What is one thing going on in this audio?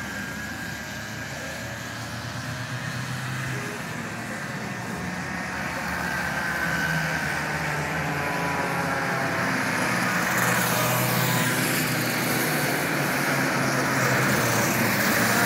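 Kart engines buzz and whine as karts race past.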